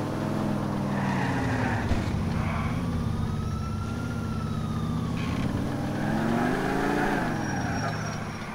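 Car tyres screech as the car skids.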